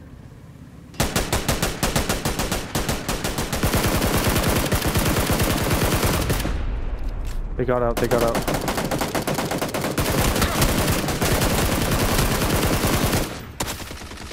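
Rapid gunfire rattles in long, loud bursts.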